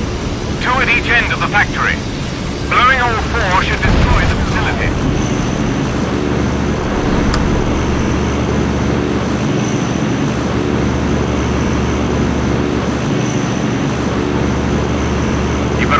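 Aircraft engines drone steadily.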